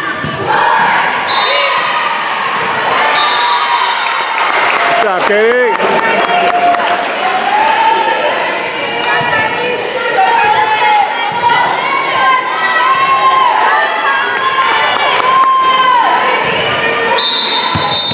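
Teenage girls shout and cheer in a large echoing gym.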